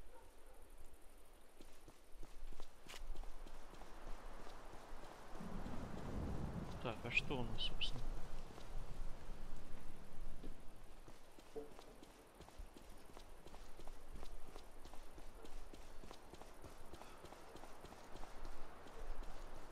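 Footsteps crunch steadily on a stone road.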